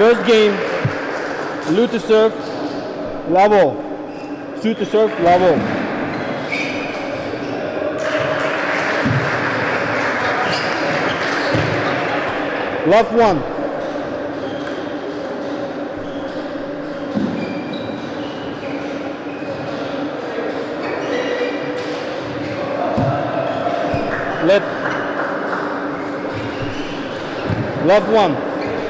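Sneakers squeak sharply on the court floor.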